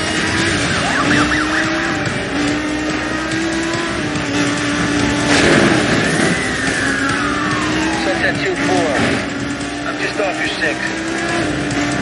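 Tyres screech as a car drifts through a bend.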